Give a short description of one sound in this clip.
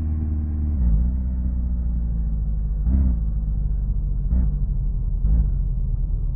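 A car engine hums low and steady, its pitch shifting as the car moves.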